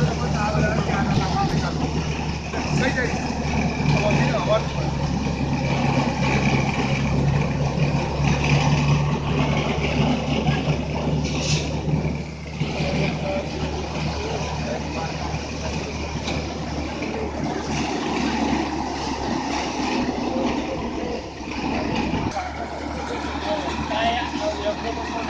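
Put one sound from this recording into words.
A threshing machine's engine drones and rattles loudly and steadily.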